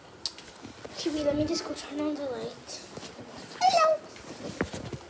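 A young girl talks playfully close by.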